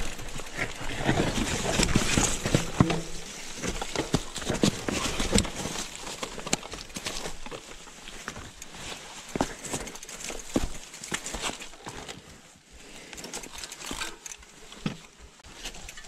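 Bicycle tyres rumble and crunch over a rocky dirt trail.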